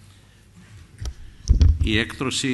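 An elderly man speaks into a microphone at a measured pace.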